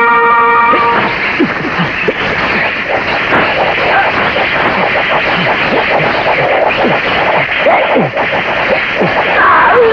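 Men shout and yell in a scuffle.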